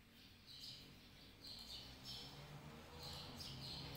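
A man types on a laptop keyboard.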